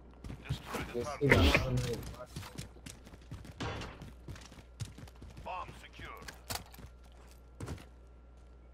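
Footsteps run quickly over rough ground.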